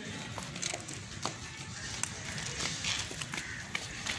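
A woman runs with quick footsteps on pavement.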